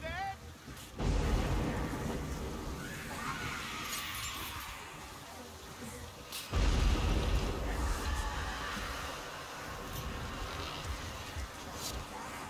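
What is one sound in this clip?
Thunder rumbles loudly.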